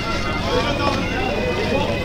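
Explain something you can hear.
An elderly man speaks loudly through a microphone.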